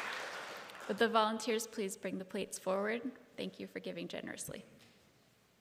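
A young woman speaks calmly into a microphone in an echoing hall.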